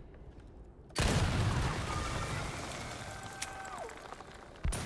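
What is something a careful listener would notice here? Fire roars and crackles.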